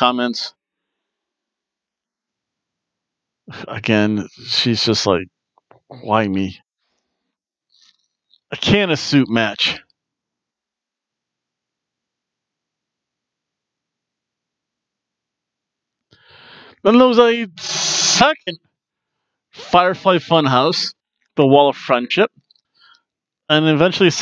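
A man speaks with animation into a headset microphone, close and a little boxy.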